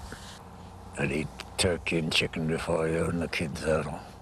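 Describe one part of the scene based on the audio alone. An elderly man speaks with feeling, close to a microphone.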